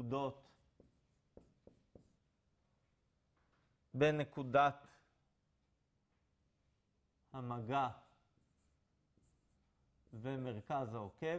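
A man speaks in short, calm phrases.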